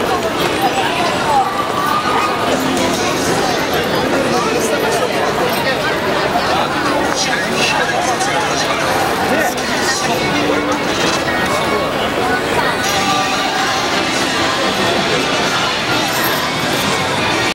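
Footsteps of many people shuffle on pavement.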